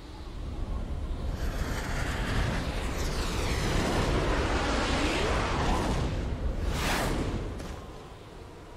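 A magical burst of energy whooshes and swirls.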